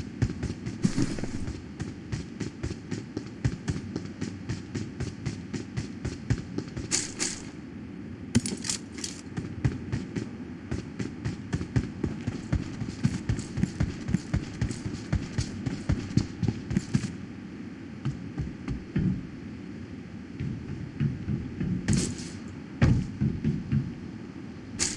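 Footsteps thud quickly and steadily as a figure runs.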